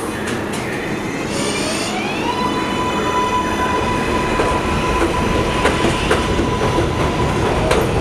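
A subway train's motors whine, rising in pitch as it pulls away.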